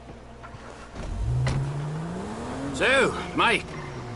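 A car engine starts and revs up as the car pulls away.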